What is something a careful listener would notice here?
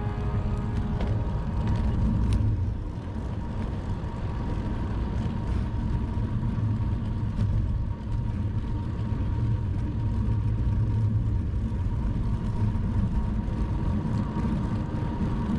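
Bicycle tyres hum along a paved road.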